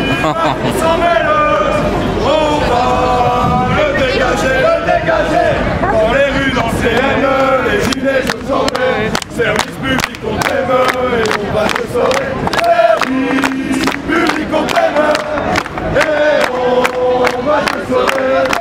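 A crowd of men and women sings and chants loudly outdoors.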